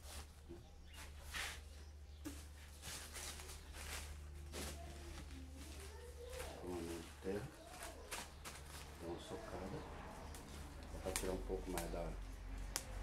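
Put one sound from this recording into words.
Dry leaves and stems rustle as they are handled.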